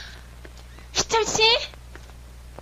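A young woman calls out loudly, close by.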